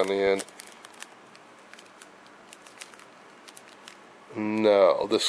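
A plastic bag crinkles and rustles as it is handled close by.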